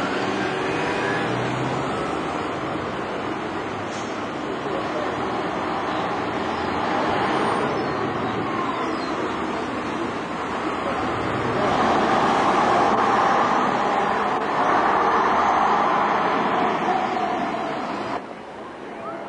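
A bus engine rumbles loudly as the bus pulls slowly past.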